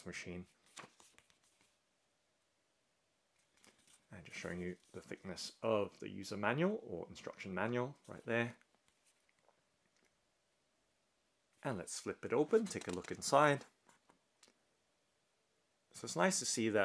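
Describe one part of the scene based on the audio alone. A paper booklet rustles and crinkles as it is handled and folded.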